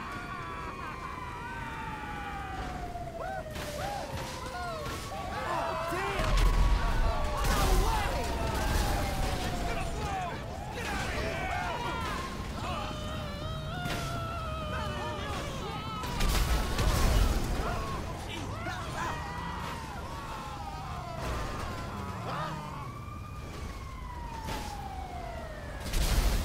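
An emergency vehicle siren wails up and down.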